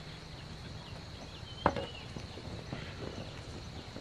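A wheelbarrow rattles as it is pushed.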